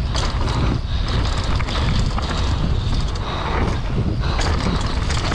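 Wind buffets loudly past a rider in motion.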